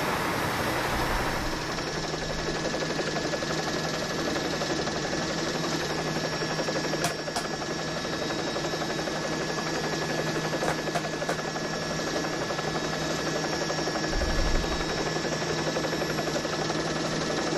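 Motorcycle engines hum steadily.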